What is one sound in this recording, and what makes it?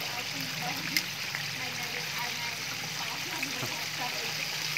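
Metal tongs click against a fryer.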